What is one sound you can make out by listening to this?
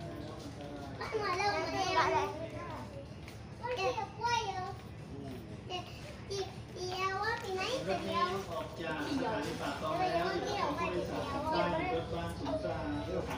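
A young person talks close by.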